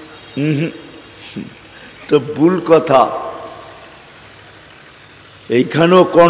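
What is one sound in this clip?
An elderly man speaks calmly into a microphone with pauses, heard through a loudspeaker.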